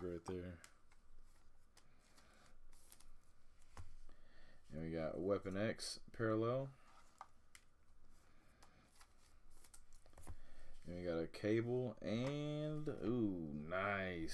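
Foil card wrappers crinkle and rustle in hands.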